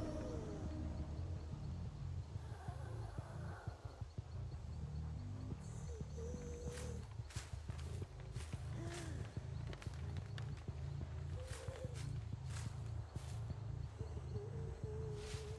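Footsteps swish and crunch through tall grass.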